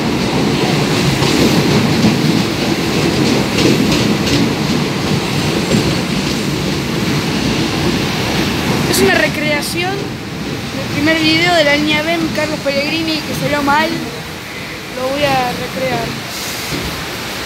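A subway train rumbles loudly past at speed and slows down.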